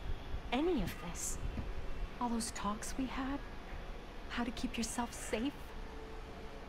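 A woman speaks softly and earnestly.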